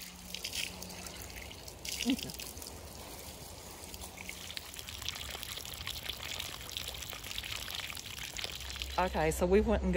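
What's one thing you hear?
Water trickles and splashes from a spring pipe.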